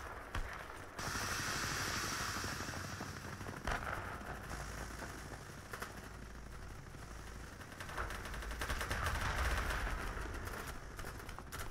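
A small drone's propellers whir steadily.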